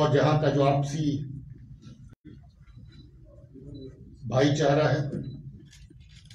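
A man speaks firmly into microphones in short bursts.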